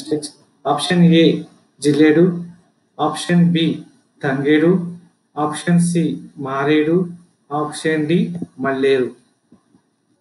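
A young man speaks clearly into a microphone, reading out a question.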